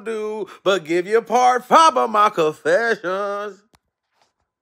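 A man speaks with animation, close up.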